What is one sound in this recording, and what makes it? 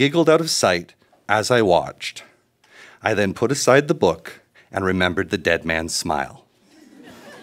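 A man reads out through a microphone.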